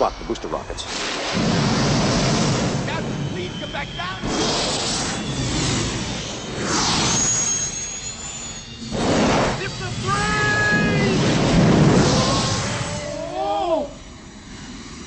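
Jets of gas roar and hiss loudly in bursts.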